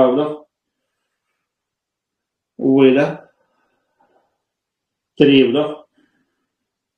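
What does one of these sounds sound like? A man speaks short, calm phrases nearby with pauses between them.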